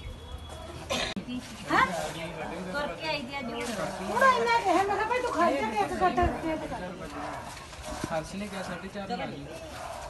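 A woman talks with animation nearby.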